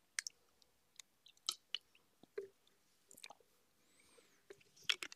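A plastic bottle crinkles and clicks in someone's hands.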